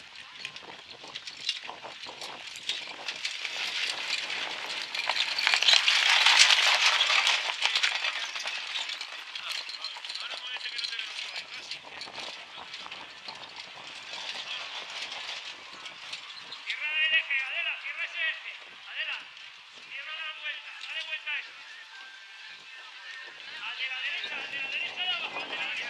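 Carriage wheels roll and crunch over dirt and gravel.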